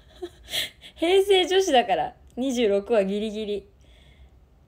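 A young woman speaks in a high, sweet voice close to a microphone.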